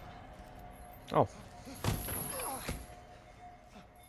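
A body thuds onto a hard floor.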